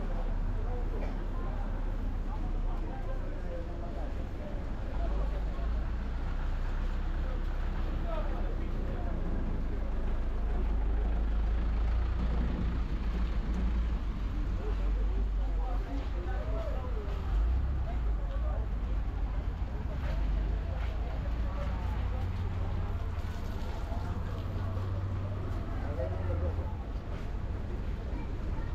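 Footsteps splash on a wet street.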